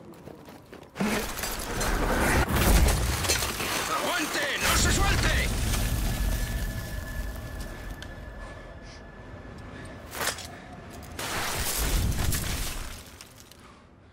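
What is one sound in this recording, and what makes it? A loud roar of tumbling snow and ice rushes past.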